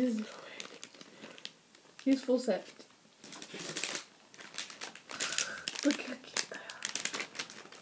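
A plastic bag crinkles and rustles.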